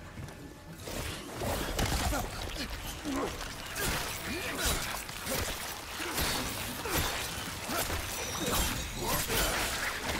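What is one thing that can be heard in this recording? Heavy blows thud during a struggle.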